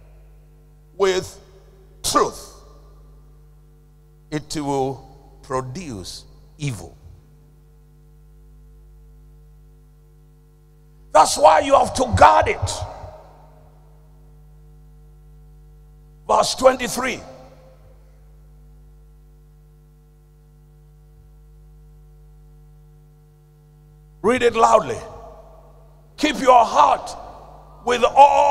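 A man preaches loudly into a microphone in short bursts with long pauses.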